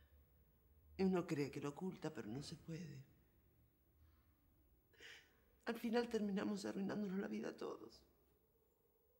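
A middle-aged woman speaks close by in a strained, emotional voice.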